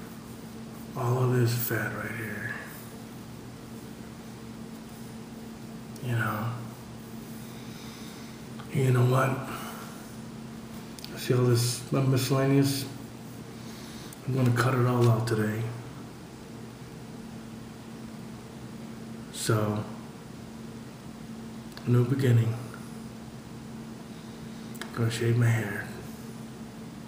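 A middle-aged man speaks calmly in short bursts, close to the microphone, with long pauses between.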